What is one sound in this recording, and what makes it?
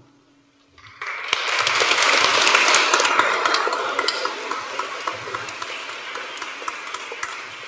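An audience applauds warmly, then the clapping slowly thins out.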